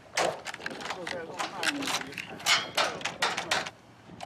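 A key clicks in a door lock.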